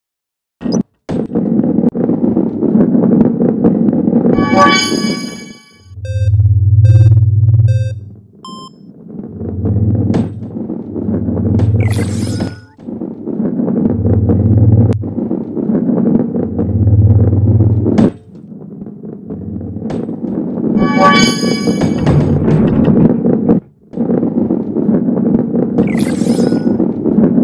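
A ball rolls along a wooden track with a steady low rumble.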